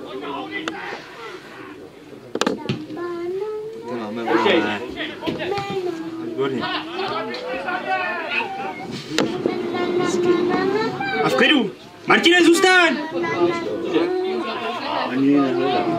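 Young men shout and call to each other outdoors.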